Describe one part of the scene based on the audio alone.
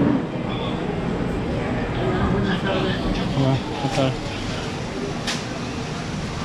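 Men and women chatter nearby in a bustling, echoing room.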